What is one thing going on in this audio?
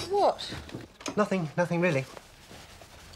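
A middle-aged woman asks a short question sleepily, close by.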